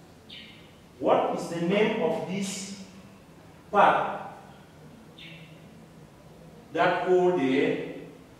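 A man explains aloud, as if teaching a class.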